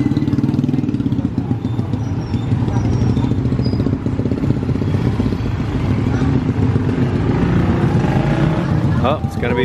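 Motorbike engines putter and buzz past close by on a street.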